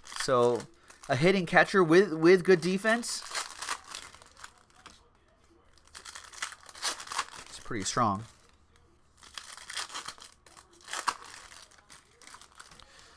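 Foil card wrappers crinkle and tear as hands open them.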